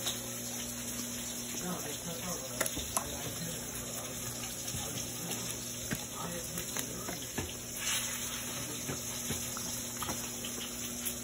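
A dog chews and crunches on leafy celery close by.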